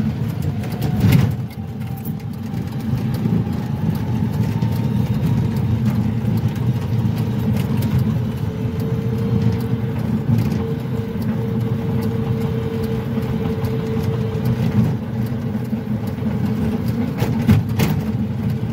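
A car jolts over bumps with sudden thuds.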